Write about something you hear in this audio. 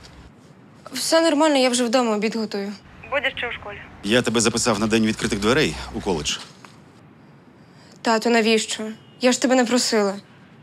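A young woman speaks on a phone with concern.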